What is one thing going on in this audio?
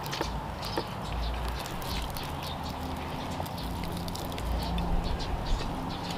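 Crispy fried food crunches as a man tears it apart by hand.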